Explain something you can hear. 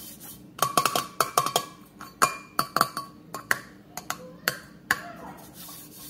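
Fingers tap and knock on a metal baking tray.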